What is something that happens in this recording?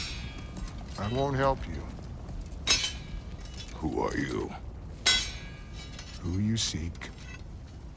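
A man speaks in a deep, gruff voice.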